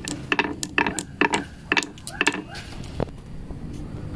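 Marbles click sharply against each other.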